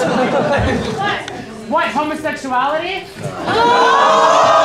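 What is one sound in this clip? A young man speaks through a microphone and loudspeakers.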